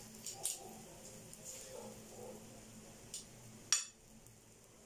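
Metal tongs click against a plate.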